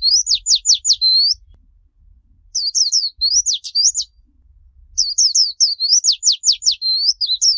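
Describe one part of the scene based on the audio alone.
A small bird sings in quick, high, twittering bursts close by.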